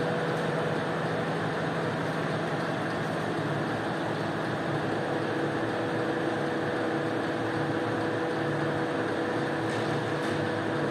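Water gushes from a hose and splashes onto a wet floor.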